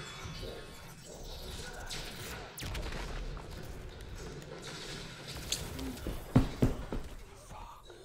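Heavy blows and explosions thud in a fight.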